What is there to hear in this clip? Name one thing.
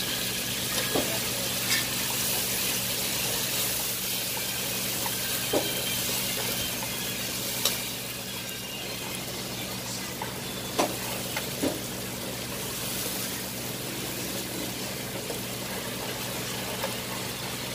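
A spatula scrapes and clinks against a metal pan.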